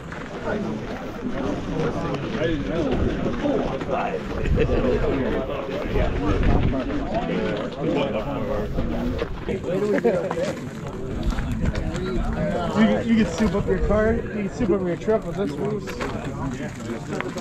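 A crowd of men talk at once, close by, outdoors.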